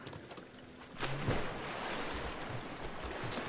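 Water churns and sloshes steadily.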